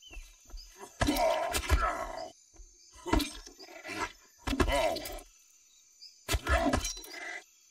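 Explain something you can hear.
A weapon strikes with heavy thuds.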